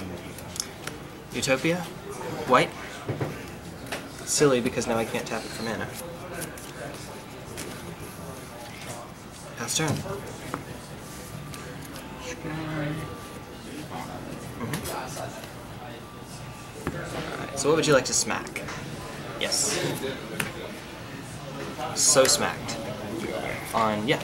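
Cards tap and slide softly onto a cloth mat.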